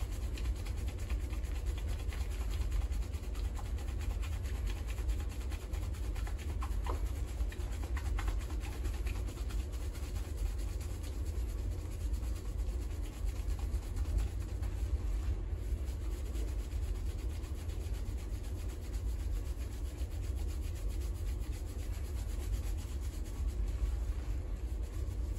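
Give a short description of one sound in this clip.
Hands scrub and squish through a lathered head of hair, steadily and close.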